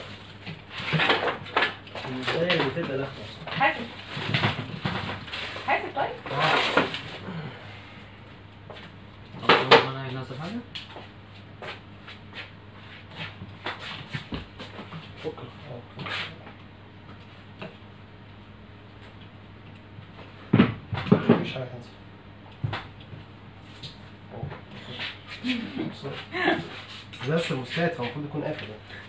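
A young man talks nearby in a casual voice.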